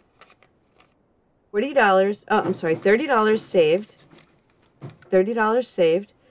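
Paper banknotes rustle as they are counted.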